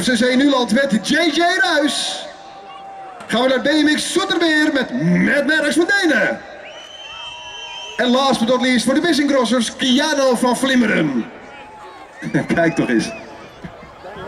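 A man speaks over a loudspeaker, calling out in short bursts.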